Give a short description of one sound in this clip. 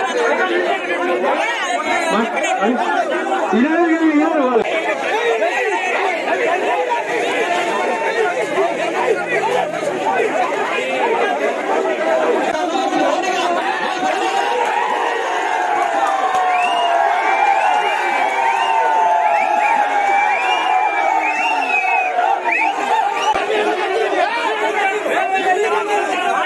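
A large crowd of men shouts and argues loudly outdoors.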